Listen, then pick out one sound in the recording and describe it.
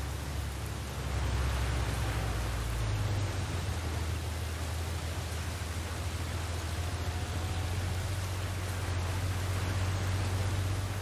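An armoured vehicle's engine rumbles nearby.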